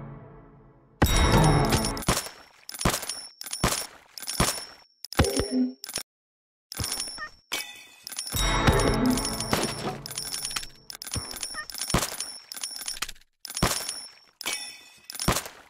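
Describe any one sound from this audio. Short chiming coin sounds from a video game ring out again and again.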